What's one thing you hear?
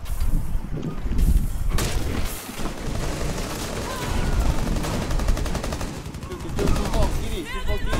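Wooden boards splinter and crack from bullets.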